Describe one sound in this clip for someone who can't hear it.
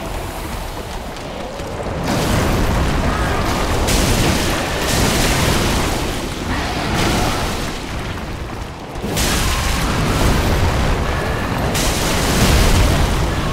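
A sword swings and strikes with metallic clangs.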